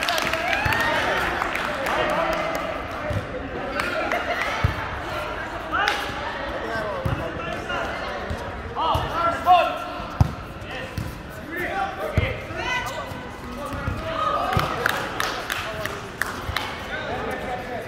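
A volleyball is struck with hands and forearms.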